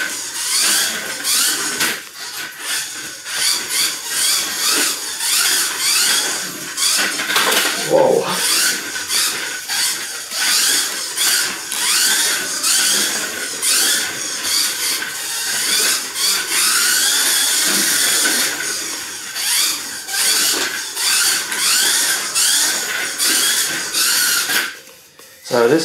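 A small electric toy car motor whines loudly, rising and falling in pitch as it speeds up and slows down.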